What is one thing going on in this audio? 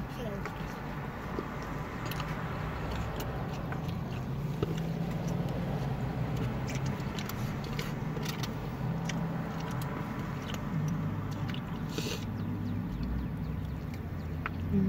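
A young woman chews food with wet mouth sounds close to the microphone.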